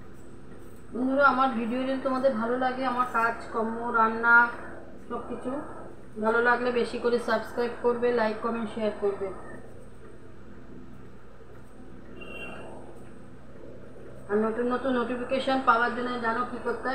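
A middle-aged woman speaks close to the microphone.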